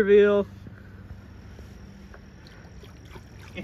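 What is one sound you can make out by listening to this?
A hand splashes lightly in shallow water.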